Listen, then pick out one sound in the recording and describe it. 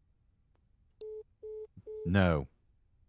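A phone beeps a few times as a call ends.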